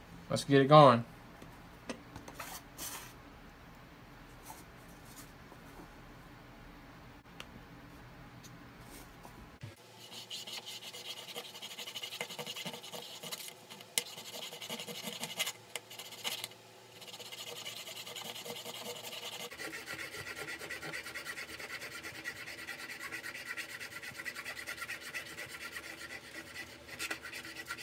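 Small metal parts click and scrape as fingers work them.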